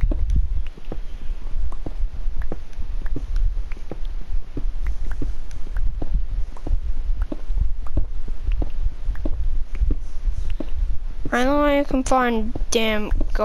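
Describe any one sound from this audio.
A pickaxe chips at stone with quick, repeated knocks.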